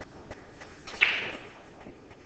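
A pool cue strikes a ball with a sharp click.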